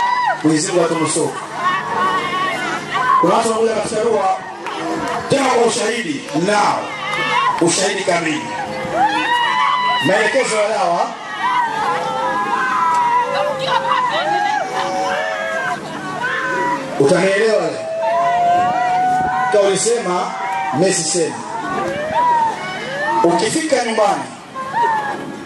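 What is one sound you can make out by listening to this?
A large crowd of women wails and cries out loudly outdoors.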